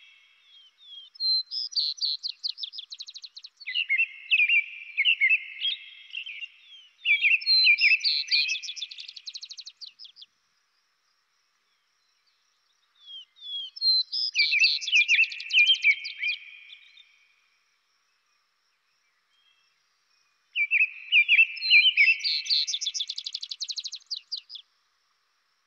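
A songbird sings bright, warbling phrases in bursts with pauses between them.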